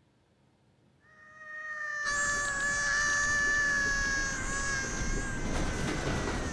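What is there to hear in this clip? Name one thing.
A cartoonish creature screams loudly and shrilly.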